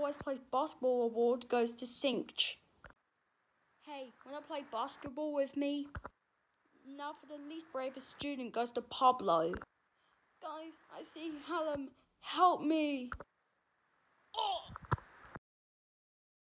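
A boy talks close to a phone microphone, in short bursts with pauses.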